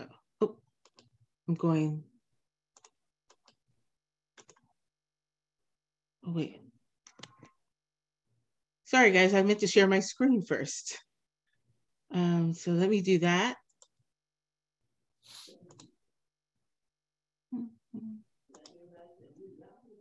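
A woman speaks calmly, with pauses, over a headset microphone in an online call.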